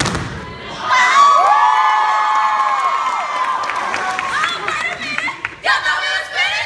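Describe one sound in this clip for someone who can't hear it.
An audience cheers and screams.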